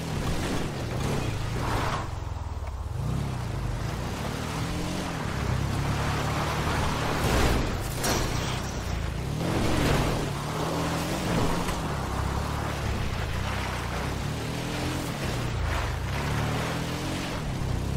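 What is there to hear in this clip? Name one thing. A vehicle engine drones and revs up and down.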